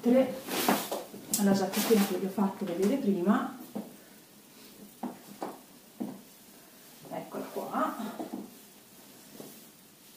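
Fabric rustles as a coat is handled.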